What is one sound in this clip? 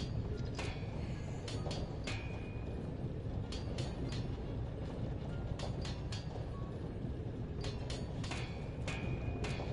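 Molten metal pours with a low, steady rumble.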